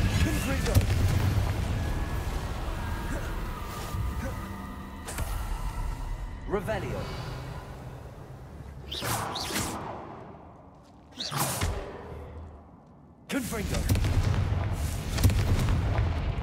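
Low rumbling booms sound during a fight.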